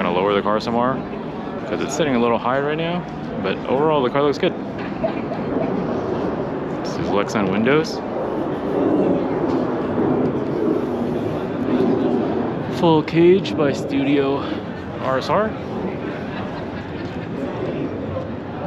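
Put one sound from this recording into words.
A crowd murmurs and chatters in a large, echoing hall.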